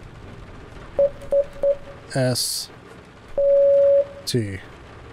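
A telegraph key sends short, steady electronic beeps.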